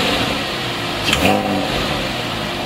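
A sports car engine revs briefly and roars through its exhausts.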